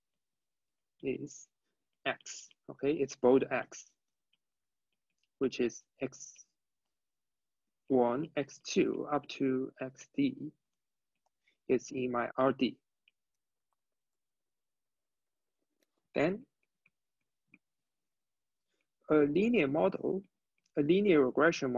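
A young man speaks calmly, close to a microphone, with pauses.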